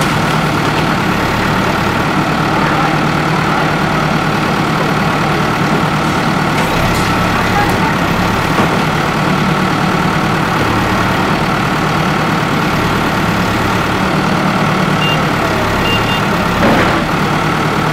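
Concrete and bricks crash and clatter down as a wall is knocked apart.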